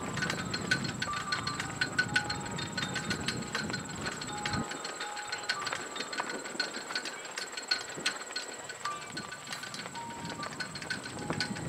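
A horse's hooves thud softly on the ground in a steady rhythm.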